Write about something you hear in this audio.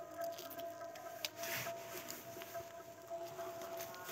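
A monkey chews food close by.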